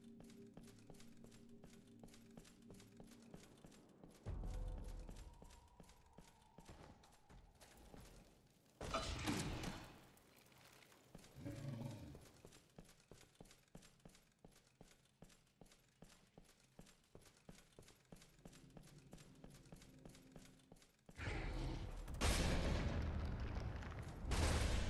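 Heavy armoured footsteps clank steadily on stone.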